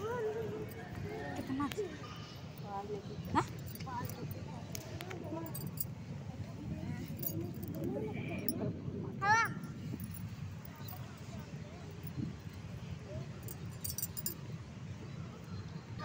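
A young girl squeals and babbles nearby.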